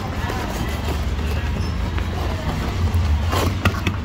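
Hands tear open a crusty loaf.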